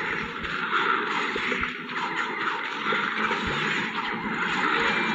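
Cartoon plants fire peas with rapid, soft popping thuds.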